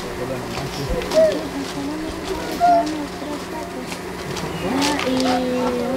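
A woman walks across gravel with crunching footsteps.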